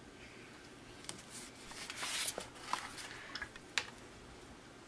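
A sheet of paper rustles as it slides across a table.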